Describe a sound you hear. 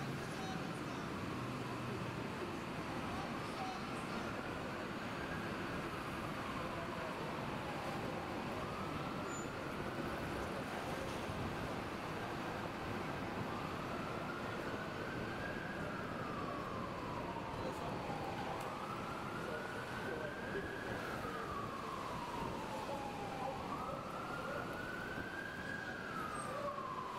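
Car tyres hiss steadily on a wet road.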